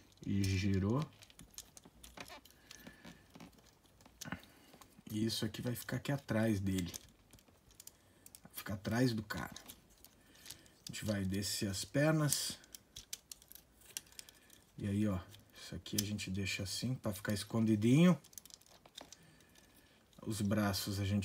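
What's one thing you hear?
Small plastic parts click and snap as a toy is twisted into shape.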